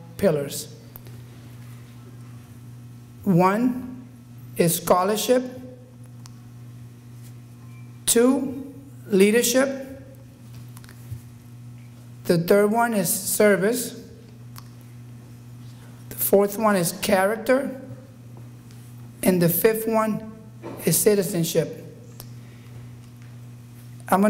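An adult man speaks through a microphone, in short bursts with pauses.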